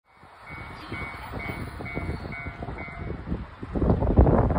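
A train approaches along the tracks with a low rumble.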